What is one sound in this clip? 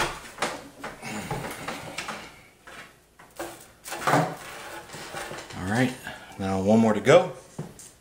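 Cables rustle and brush against a metal case.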